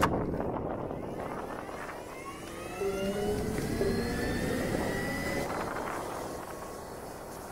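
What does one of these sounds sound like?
A motorcycle pulls away and speeds up, its motor whining higher and higher.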